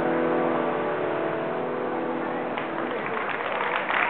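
A piano plays sustained notes outdoors.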